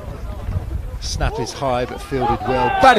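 A crowd of players on the sideline shouts and cheers from a distance outdoors.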